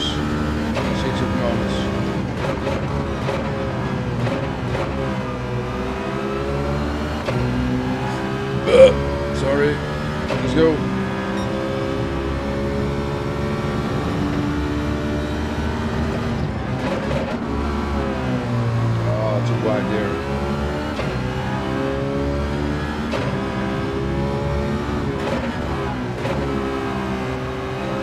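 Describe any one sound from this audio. A racing car engine revs high and shifts gears, rising and falling in pitch.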